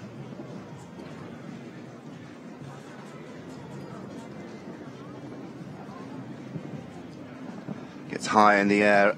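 Horse hooves thud on soft sand.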